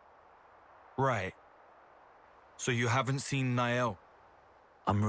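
A young man speaks calmly and briefly.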